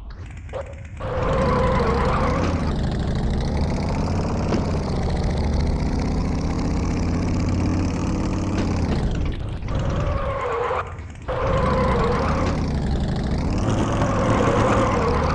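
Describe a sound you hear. A motorcycle engine revs and roars steadily.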